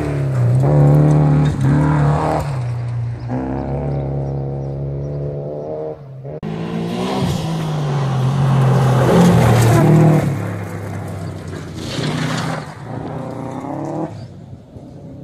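A rally car engine roars loudly as it revs hard and speeds past.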